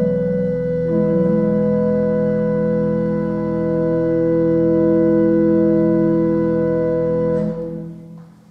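An organ plays loud sustained chords in a large echoing hall.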